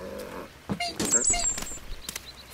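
A small bird chirps briefly.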